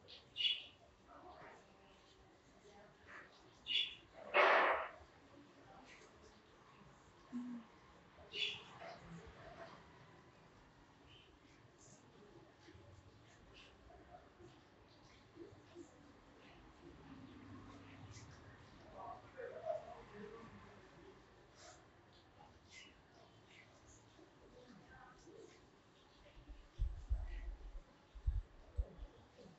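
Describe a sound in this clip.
Fingers rub and rustle through hair close by.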